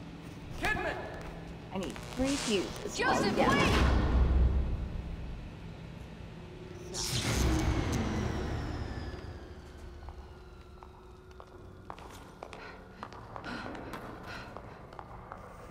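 Footsteps echo on a hard floor in a large echoing tunnel.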